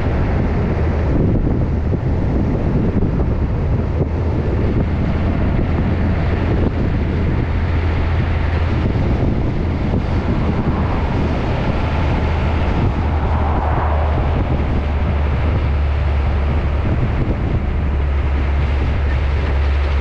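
Tyres roll on the road with a steady rushing noise.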